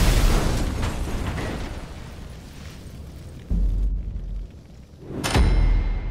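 Flames roar and crackle on burning wreckage.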